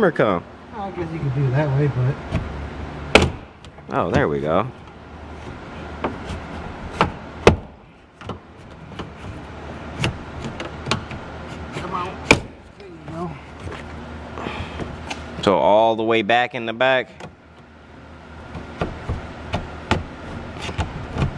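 Plastic trim clips click and snap as a panel is pried loose.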